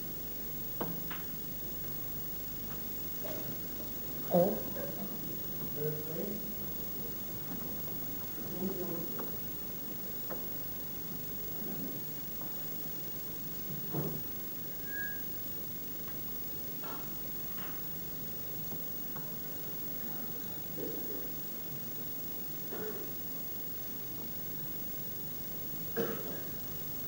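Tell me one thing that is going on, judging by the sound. Snooker balls knock together with sharp clicks.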